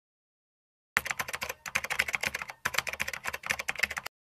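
Fingers tap quickly on a laptop keyboard.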